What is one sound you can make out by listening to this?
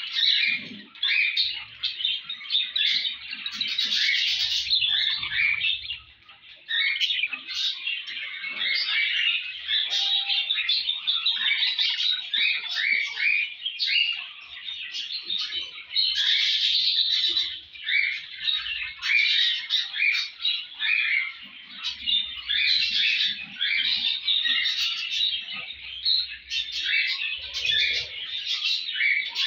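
Budgies chirp and warble continuously, close by.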